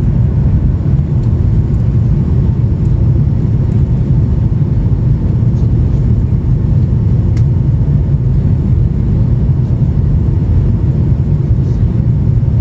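Jet engines roar with a steady, deep rumble inside an airplane cabin.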